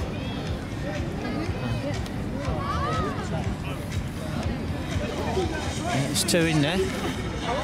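A crowd of adults talks and calls out nearby.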